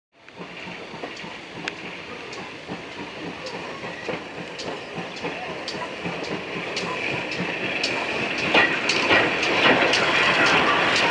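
A steam locomotive rumbles slowly past close by, growing louder.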